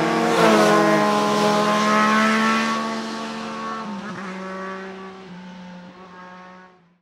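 Motorcycle engines drone away into the distance and fade.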